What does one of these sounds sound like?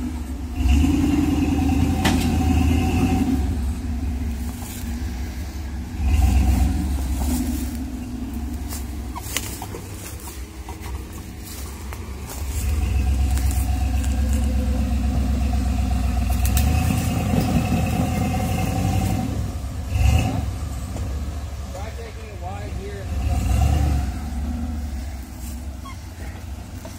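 An engine revs hard in bursts, loud and close.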